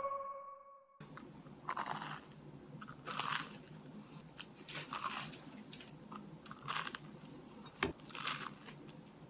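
A young man bites and crunches loudly on crisp toast close by.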